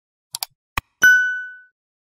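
A small bell chimes once and fades.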